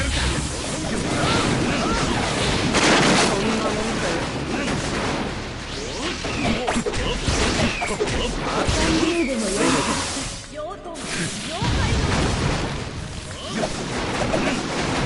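Punches and blasts crash and thud in quick succession.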